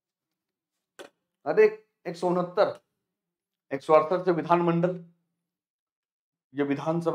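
A man speaks clearly into a close microphone, explaining in short bursts with pauses.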